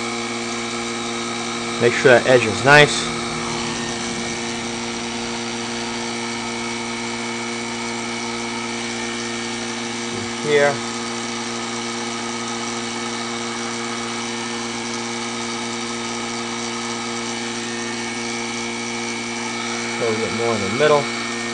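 A heat gun blows with a steady whirring drone.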